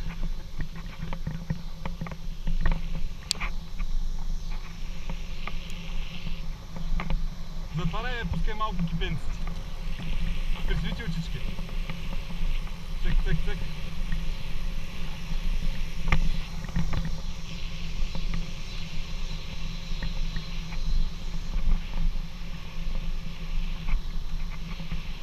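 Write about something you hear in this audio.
Wind rushes and buffets steadily past a fast-moving bicycle.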